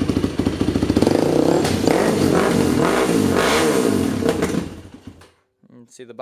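A small engine revs up and down several times.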